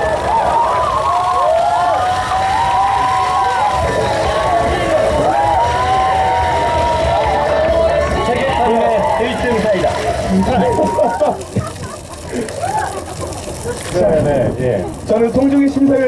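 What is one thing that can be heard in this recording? A young man talks with animation through a loudspeaker.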